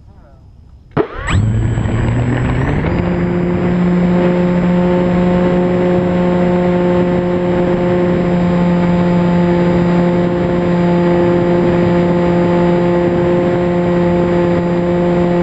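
A model airplane's electric motor starts up, whines higher and then drones loudly and steadily.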